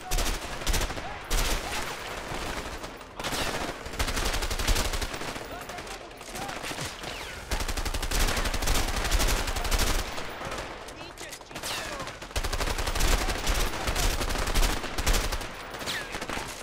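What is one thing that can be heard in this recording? Assault rifles fire in rapid bursts.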